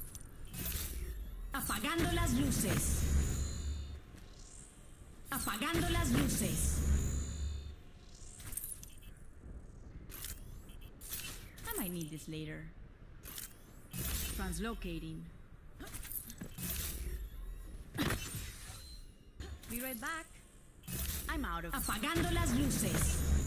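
A futuristic teleporter whooshes and hums in a rush.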